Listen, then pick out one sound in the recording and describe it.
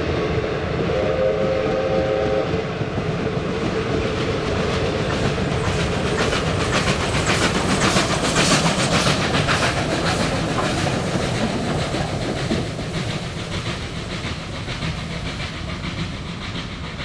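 Train carriages clatter over the rails.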